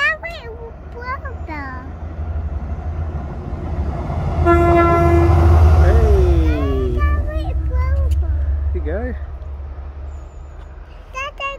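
A diesel locomotive rumbles past close by, loud and then fading away.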